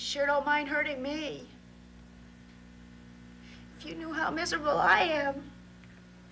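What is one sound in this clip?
A young woman speaks with alarm.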